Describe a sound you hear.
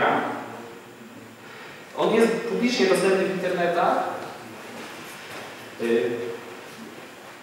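A young man speaks into a microphone.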